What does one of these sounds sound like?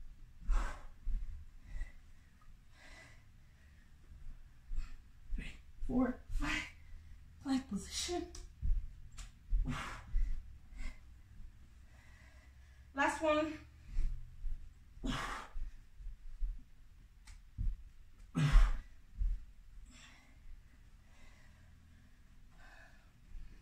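A woman's feet and hands thump softly on the floor.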